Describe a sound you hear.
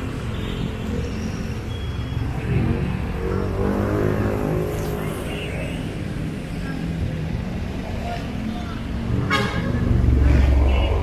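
Traffic hums steadily in the background.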